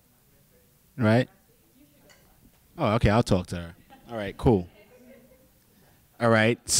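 A man speaks into a microphone in short, lively bursts, heard through a loudspeaker in a room.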